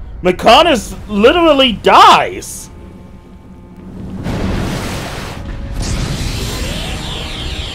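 Water crashes and splashes heavily.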